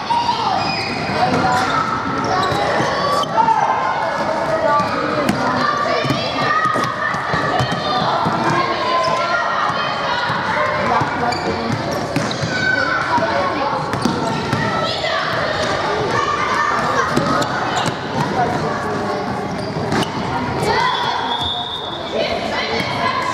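Sneakers squeak sharply on the hall floor.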